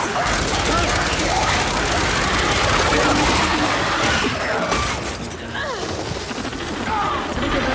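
Explosions boom and debris crashes.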